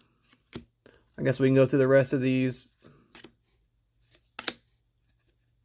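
Stiff cards slide and flick against each other as they are flipped by hand.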